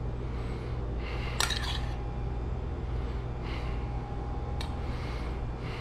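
A metal spoon clinks against a small pan.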